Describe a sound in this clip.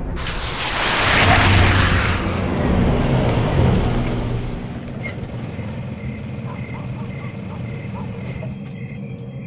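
A car engine hums as it drives down a street.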